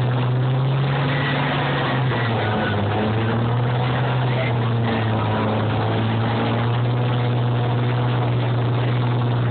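A loud tractor engine roars and strains steadily outdoors.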